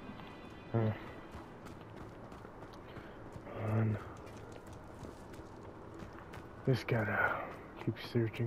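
Footsteps patter quickly on ground.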